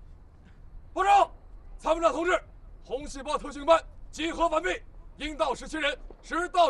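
A man reports loudly in a clipped military voice.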